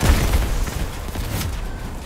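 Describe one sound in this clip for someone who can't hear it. A heavy explosion booms.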